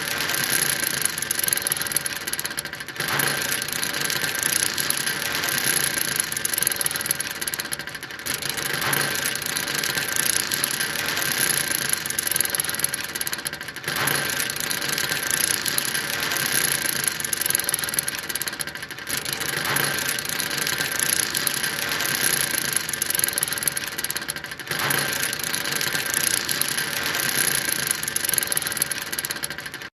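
An anchor chain rattles as it runs out.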